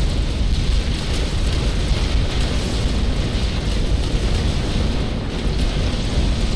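Explosions boom and rumble continuously.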